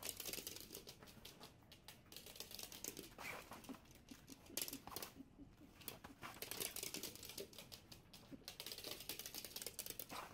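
Small dogs' claws click and skitter on a hardwood floor.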